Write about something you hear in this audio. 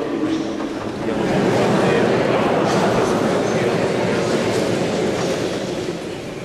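A crowd of people sings together in a large echoing hall.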